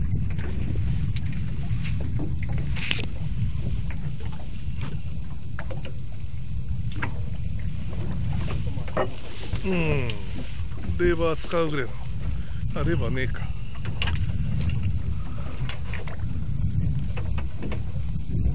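Wind rumbles and buffets steadily outdoors on open water.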